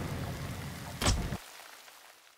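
A game menu button clicks once.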